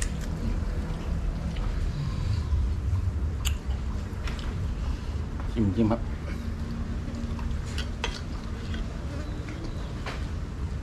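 Utensils clink against dishes.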